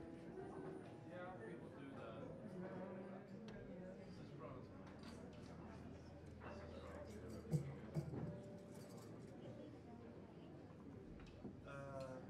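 A drummer plays light brushes and cymbals.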